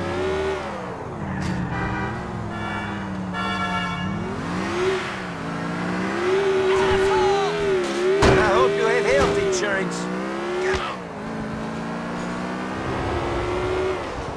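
A car engine revs up and down steadily.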